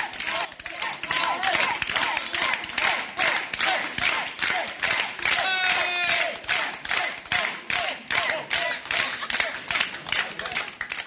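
A crowd claps hands in a steady rhythm.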